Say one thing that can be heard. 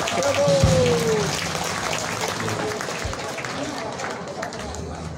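A bass guitar thumps along.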